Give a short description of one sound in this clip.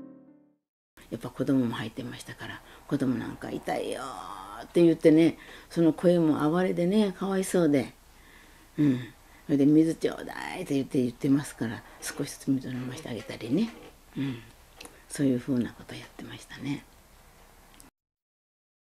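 An elderly woman speaks calmly and thoughtfully close by.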